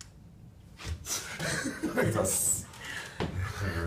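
A young man laughs heartily close by.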